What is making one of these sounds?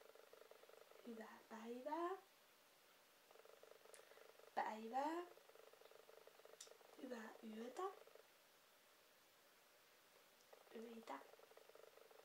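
A young woman speaks slowly and clearly nearby.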